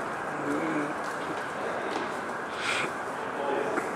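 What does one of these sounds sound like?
Footsteps echo in a large hall.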